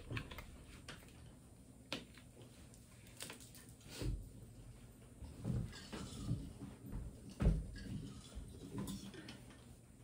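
Knocks and clatters sound as equipment is handled nearby.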